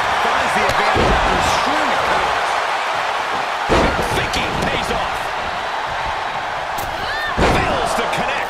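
Heavy thuds of bodies slam onto a wrestling ring mat.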